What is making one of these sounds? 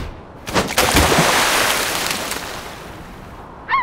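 Something splashes into water.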